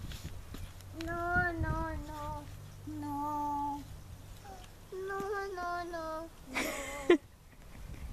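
A toddler babbles and chatters in a high voice close by.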